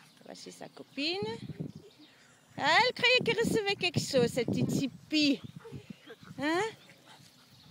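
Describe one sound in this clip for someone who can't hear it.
A woman talks to dogs in a high, excited voice nearby.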